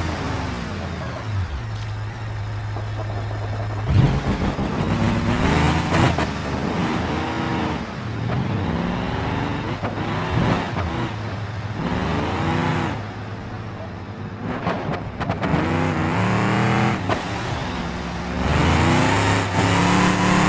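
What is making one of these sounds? A car engine revs and roars, rising and falling.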